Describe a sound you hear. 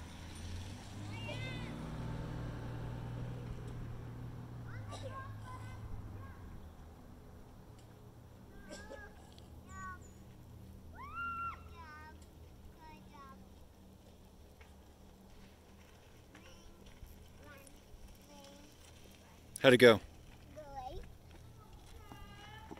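Bicycle tyres crunch over a dirt track.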